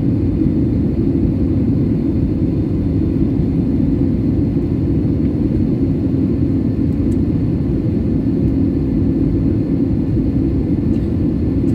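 Aircraft engines roar steadily in a low, constant rumble.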